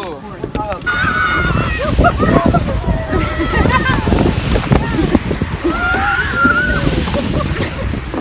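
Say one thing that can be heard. Children slide down a plastic slide with a rumbling swish.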